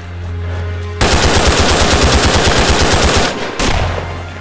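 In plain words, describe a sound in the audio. Rapid gunfire rattles loudly and close by.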